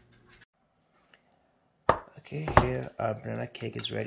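A baking pan is set down on a wooden board with a soft knock.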